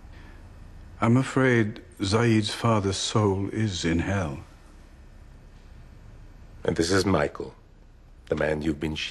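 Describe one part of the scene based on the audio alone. An older man speaks softly and gravely, close by.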